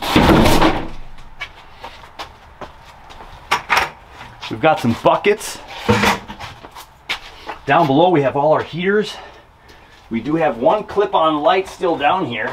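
Wooden boards knock and clatter.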